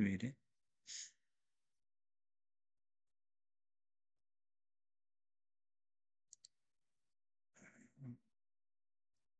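A middle-aged man speaks briefly and calmly through an online call microphone.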